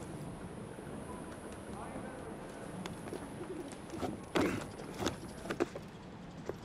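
Footsteps thud and scrape on roof tiles.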